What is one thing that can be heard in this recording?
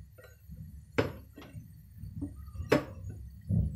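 A spatula knocks against the rim of a pot.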